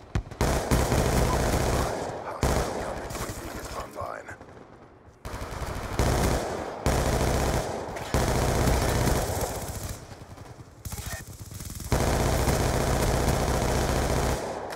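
An automatic rifle fires in bursts.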